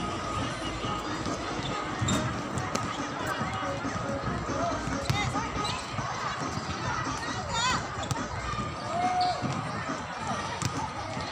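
Young women call out and chatter across an open court outdoors.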